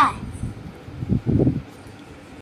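A young boy speaks briefly close by.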